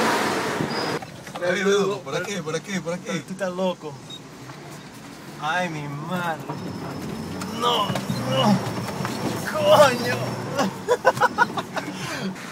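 A young man sings loudly nearby.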